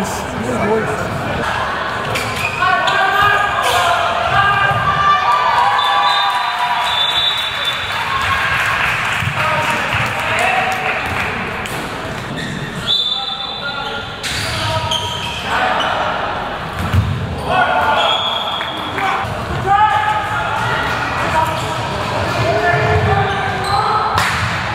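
Sneakers squeak sharply on a hard court floor.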